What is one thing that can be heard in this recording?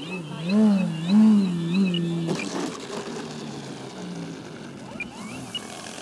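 Small wheels rattle on concrete as a model plane touches down and rolls.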